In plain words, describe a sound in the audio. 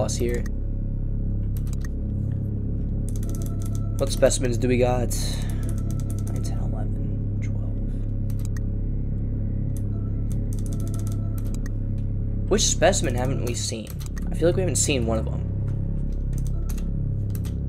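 Short electronic beeps click as menu choices change.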